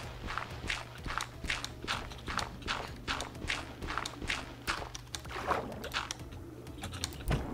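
Blocks of dirt crunch repeatedly as they are dug out.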